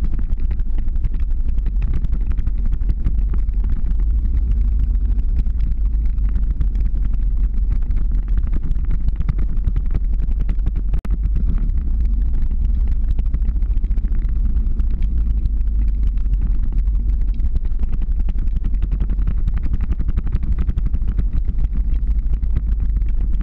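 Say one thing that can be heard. Skateboard wheels roll and rumble on asphalt.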